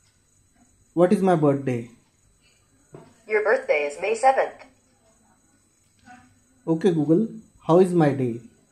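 A small loudspeaker plays short bursts of sound with pauses between them.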